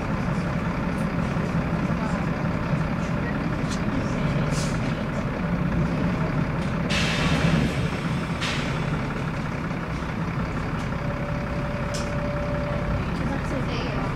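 A diesel engine drones from inside a moving single-decker bus.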